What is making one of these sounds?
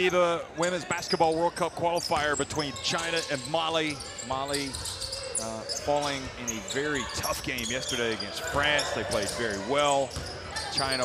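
Sneakers squeak on a hardwood court as players run.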